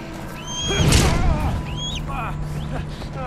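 An eagle screeches loudly.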